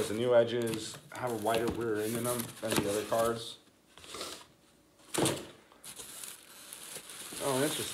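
Cardboard rustles and scrapes.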